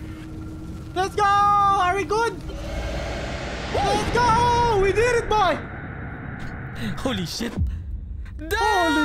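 Young men scream and shout excitedly into microphones.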